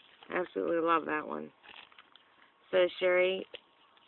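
A small plastic bag crinkles softly under fingers.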